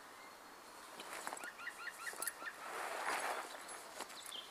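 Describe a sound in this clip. A rolled sleeping mat rustles as a man handles it.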